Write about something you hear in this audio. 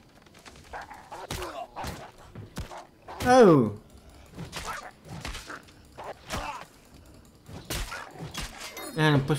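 Weapons strike and clash in a fight.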